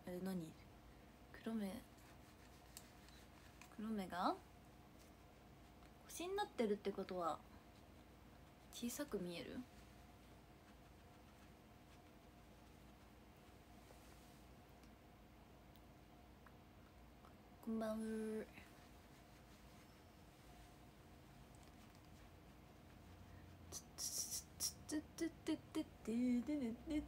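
A young woman speaks softly and close by, in short phrases.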